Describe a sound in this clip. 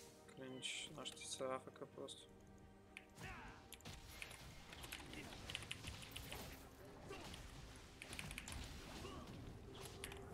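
Video game spell effects whoosh and chime.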